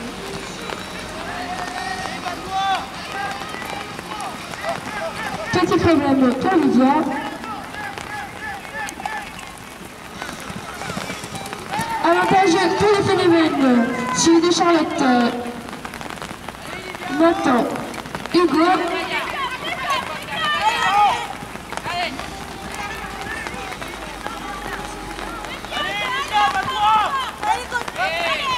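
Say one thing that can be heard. A crowd of spectators calls out and cheers outdoors.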